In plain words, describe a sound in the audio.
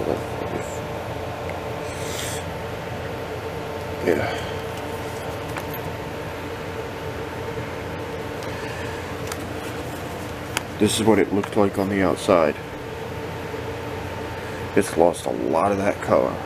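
A leather wallet rustles as fingers handle it.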